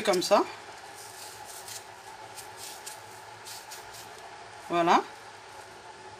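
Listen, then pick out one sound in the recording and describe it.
A knife scrapes softly against an onion's skin.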